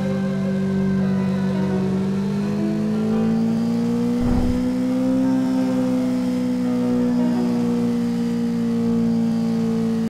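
A motorcycle engine drones loudly at high speed, its pitch rising and falling slightly.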